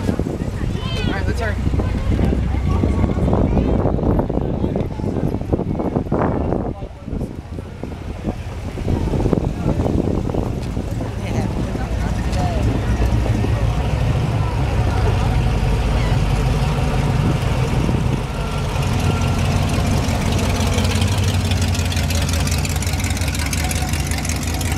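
Old car engines rumble and idle as cars roll slowly past.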